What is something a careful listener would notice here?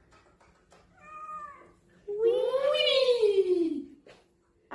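A cat meows loudly, with long drawn-out cries.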